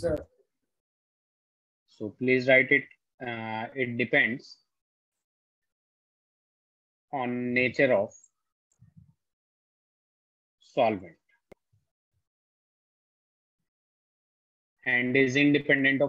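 A man speaks calmly into a nearby microphone, in short bursts with pauses.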